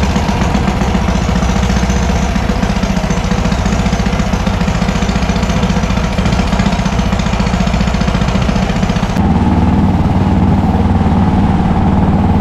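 Water rushes past the hull of a moving boat.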